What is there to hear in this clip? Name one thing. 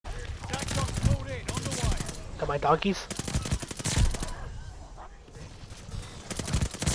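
A mounted machine gun fires rapid bursts.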